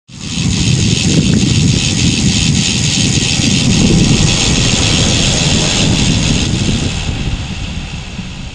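Wind roars loudly over a microphone.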